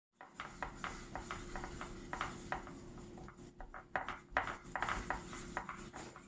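A paintbrush dabs and swishes softly against a palette.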